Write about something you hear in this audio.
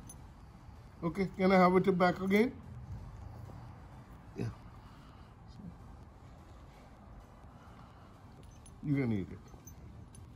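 A man speaks commands to a dog in a firm, drawn-out voice close by.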